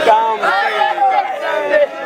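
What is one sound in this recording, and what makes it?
A woman shouts with excitement close by.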